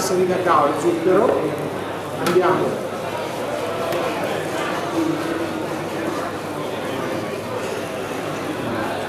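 A man speaks with animation through a microphone over loudspeakers in a large echoing hall.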